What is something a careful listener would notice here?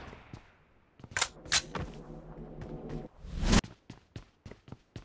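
Gunshots crack in short, quick bursts.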